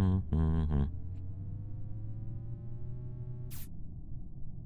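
A fuel pump whirs with a rising tone.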